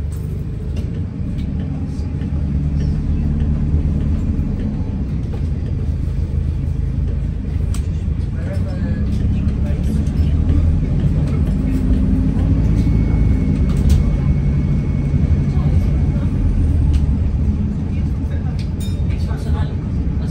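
Loose fittings rattle and click as the bus moves.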